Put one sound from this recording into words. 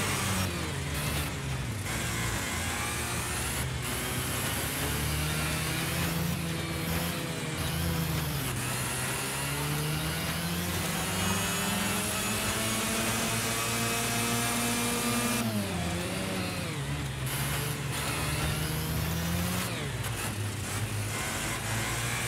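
A go-kart engine buzzes loudly, its pitch rising and falling as it speeds up and slows down.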